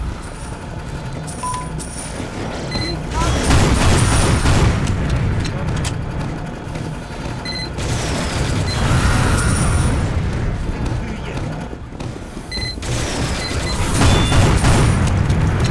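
Gunfire and explosions boom and crackle in a battle.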